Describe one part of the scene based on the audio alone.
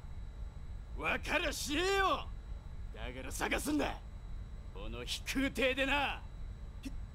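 A man speaks firmly and emphatically.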